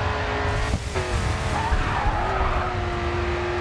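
Tyres screech as a car slides through a corner.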